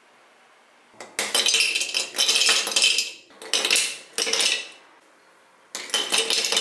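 Ice cubes clatter and clink into a glass.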